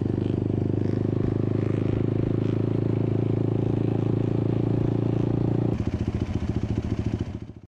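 A quad bike engine drones loudly up close, then drops to a rough, pulsing idle.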